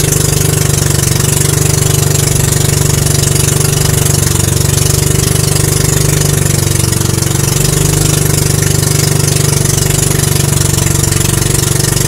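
A boat engine chugs loudly and steadily up close.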